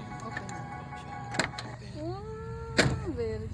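A car door opens with a thud.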